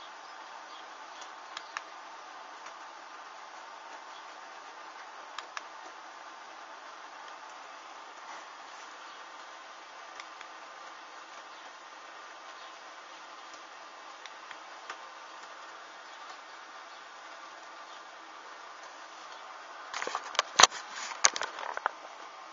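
Small flames crackle softly as cloth burns.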